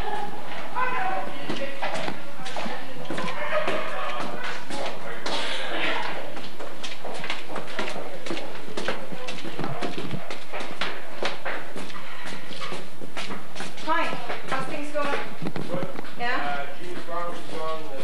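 Footsteps climb stairs and walk along a hard floor.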